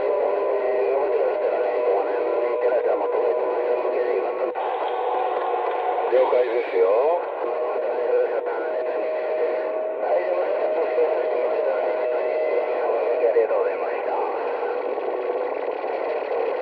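A radio receiver plays a crackling, warbling signal through its speaker, with tinny, muffled sound.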